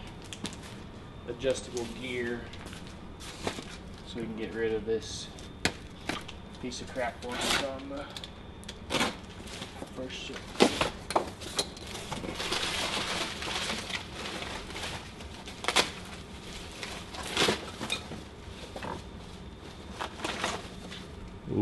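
A cardboard box thumps and scrapes as it is handled.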